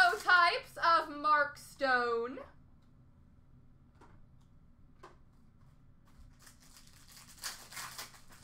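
A foil card pack crinkles softly in a hand.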